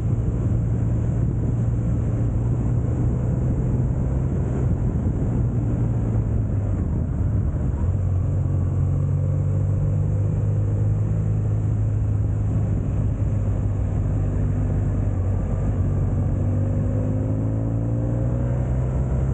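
Wind rushes past loudly.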